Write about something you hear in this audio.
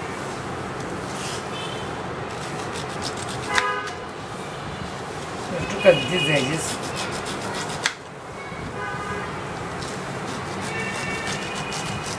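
A knife taps on a wooden board.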